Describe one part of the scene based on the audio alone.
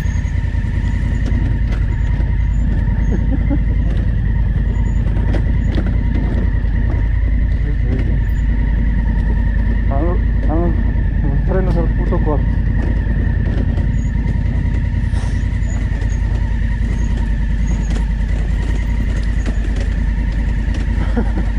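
Tyres crunch and knock over rocks and gravel.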